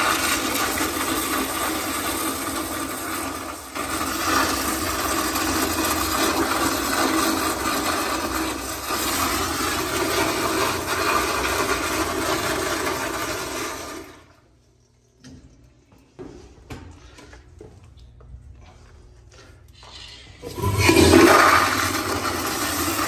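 A toilet flushes with loud rushing, swirling water.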